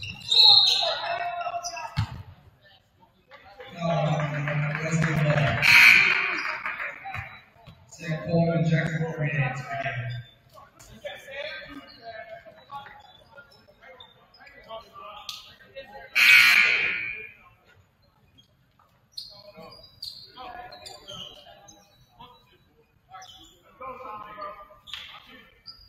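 Men call out and talk in a large echoing gym.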